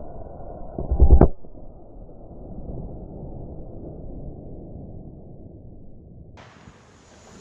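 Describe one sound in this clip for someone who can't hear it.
A loud explosion booms outdoors, then rumbles away.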